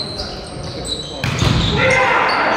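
A volleyball is spiked with a sharp smack.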